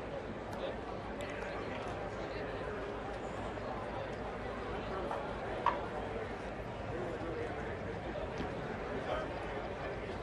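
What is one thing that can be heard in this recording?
A crowd murmurs and chatters in an open-air stadium.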